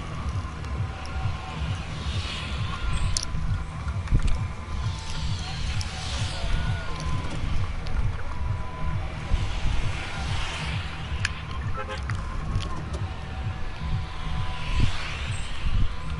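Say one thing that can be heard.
Wind rushes and whooshes past in waves over a low, steady rumble.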